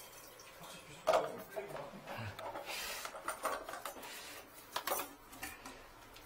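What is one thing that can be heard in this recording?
A drain-cleaning cable scrapes and rattles in a floor drain.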